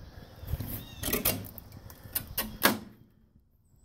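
A metal latch clicks and a metal door swings open with knocks.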